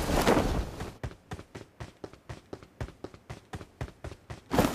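Footsteps run quickly across a hard roof.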